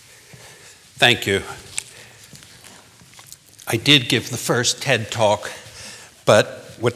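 A man speaks through a microphone in an echoing hall.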